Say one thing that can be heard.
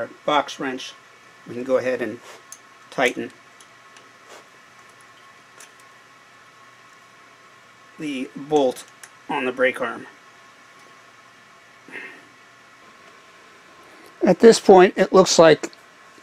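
An elderly man speaks calmly nearby in short phrases.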